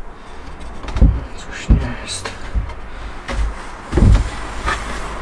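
Wood knocks against wood.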